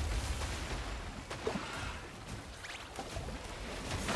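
Water splashes and surges.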